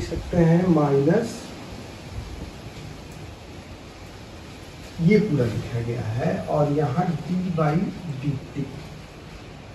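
A man speaks calmly nearby, in short phrases with pauses.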